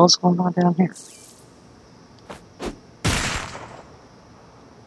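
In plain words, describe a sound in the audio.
Electricity crackles and zaps in sharp bursts.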